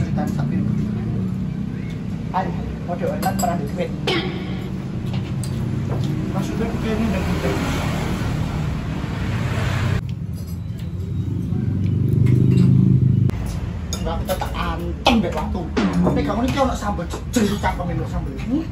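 Another young woman answers calmly nearby.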